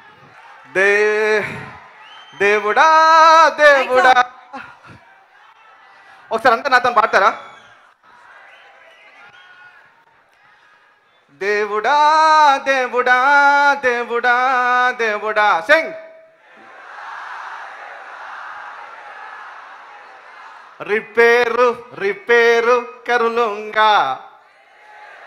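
A man sings with feeling into a microphone, heard through loudspeakers.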